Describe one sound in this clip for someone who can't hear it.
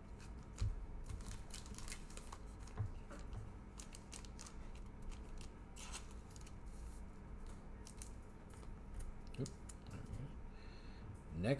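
A plastic sleeve crinkles and rustles.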